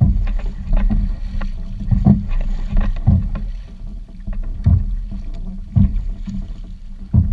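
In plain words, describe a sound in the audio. A paddle splashes and dips into shallow water with a steady rhythm.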